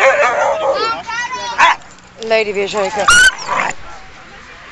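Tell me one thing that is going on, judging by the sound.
Dogs yelp and whine excitedly.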